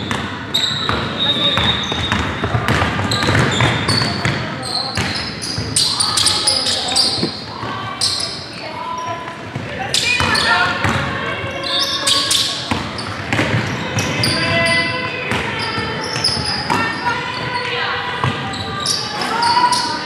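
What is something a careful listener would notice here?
Sneakers squeak sharply on a hardwood court in an echoing hall.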